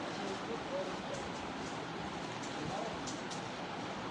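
A plastic bag crinkles as a paper card is placed on it.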